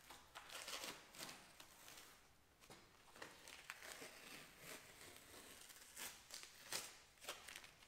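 A cloth rubs and wipes over metal.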